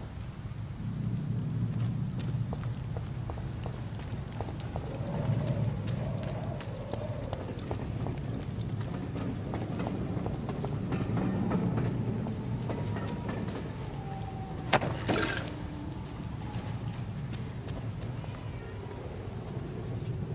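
Footsteps walk steadily over a stone floor.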